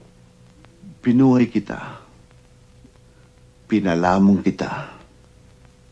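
A young woman speaks in an upset tone, close by.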